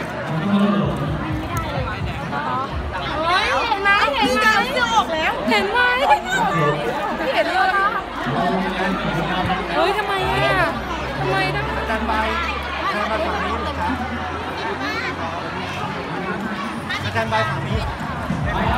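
A crowd of young women chatter and call out excitedly nearby.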